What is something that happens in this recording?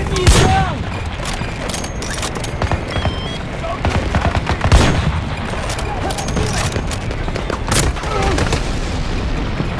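Rifle shots crack in quick bursts, loud and close.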